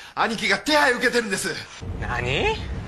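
A man speaks urgently into a phone.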